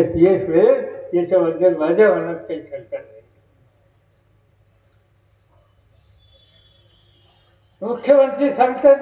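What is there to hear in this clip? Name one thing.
An elderly man speaks forcefully into a microphone over loudspeakers, with pauses.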